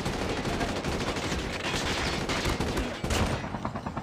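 Rapid gunshots fire.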